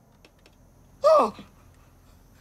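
A man screams loudly in pain.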